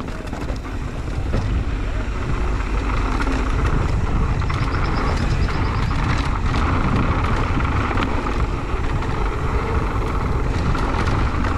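Tyres crunch and rumble over a dirt track.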